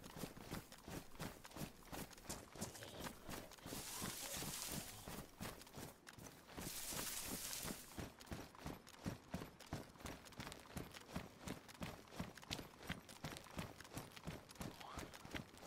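Quick footsteps run steadily over ground.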